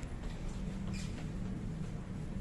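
An elevator button clicks when pressed.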